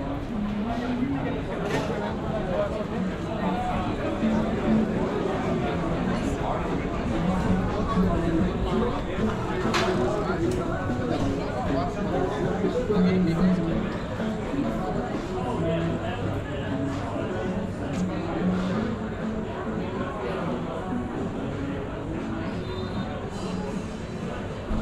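A crowd of men and women chat and murmur nearby outdoors.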